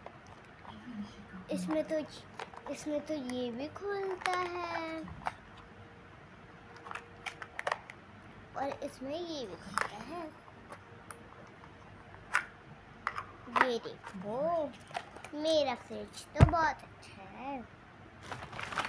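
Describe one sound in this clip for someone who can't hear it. A young girl speaks softly and playfully close by.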